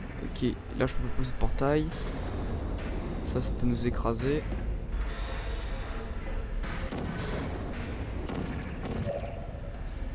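A sci-fi energy gun fires with short electronic zaps, several times.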